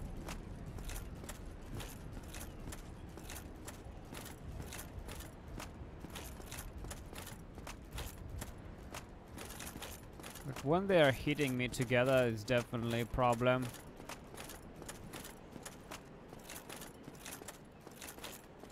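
Armoured footsteps clank at a steady pace.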